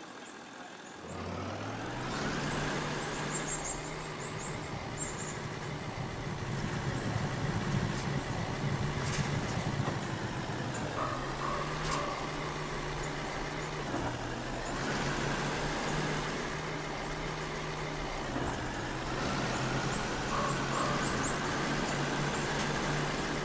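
A truck engine rumbles and revs as the truck drives along a dirt road.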